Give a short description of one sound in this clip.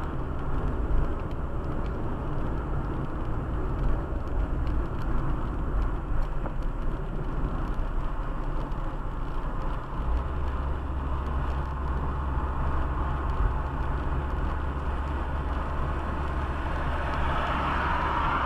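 Tyres roll over a rough road with a steady rumble.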